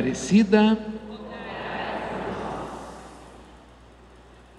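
A man sings out briefly in a large echoing hall, and the sound slowly dies away.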